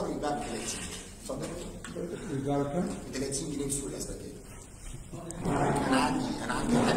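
A middle-aged man speaks with animation into a microphone in an echoing hall.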